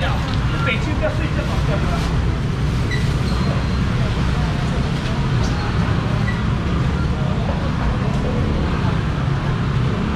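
Plastic basins clatter and knock.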